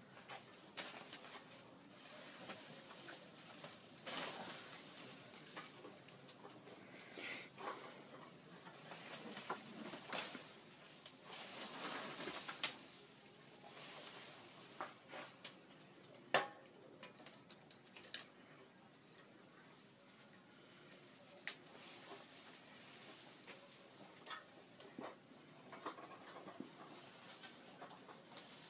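Leaves rustle as a woman pulls at vines.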